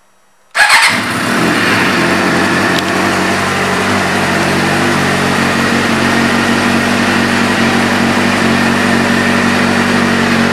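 An inline-four sport motorcycle engine idles.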